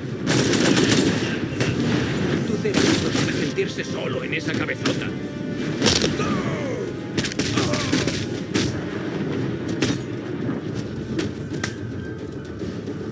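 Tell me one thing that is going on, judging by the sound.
Punches and kicks land with heavy thuds in a brawl.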